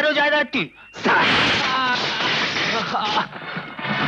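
A man shouts in distress.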